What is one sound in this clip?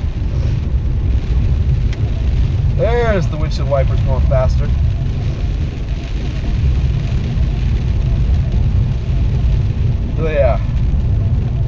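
Windscreen wipers sweep back and forth across the glass.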